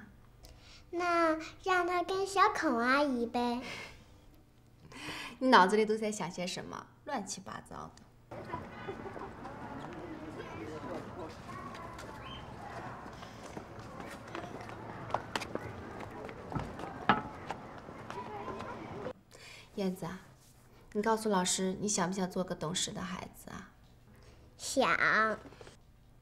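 A young girl speaks clearly and close by.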